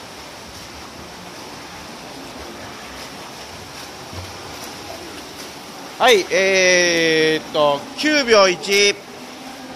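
Water splashes as swimmers stroke through a pool, in an echoing hall.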